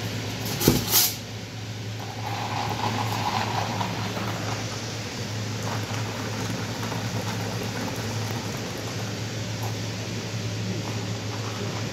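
Fizzy soda streams from a tap into a paper cup.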